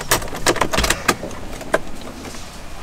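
A key clicks as it turns in a car's ignition.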